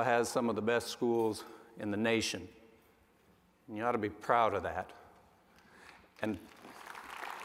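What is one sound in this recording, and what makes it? A man speaks calmly and with pauses into a microphone in a large hall.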